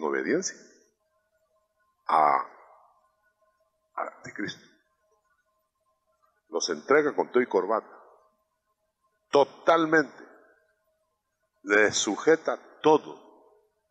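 A middle-aged man preaches through a microphone in short, emphatic phrases with pauses between them.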